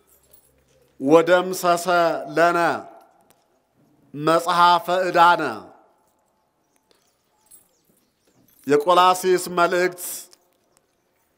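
A man chants slowly in a deep voice through a microphone and loudspeaker.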